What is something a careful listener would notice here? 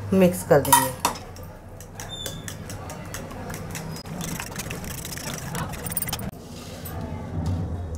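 A metal spoon stirs beaten egg in a ceramic bowl.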